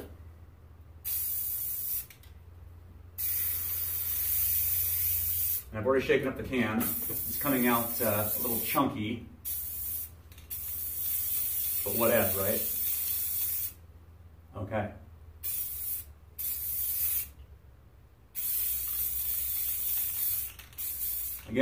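An aerosol can hisses in short and long sprays.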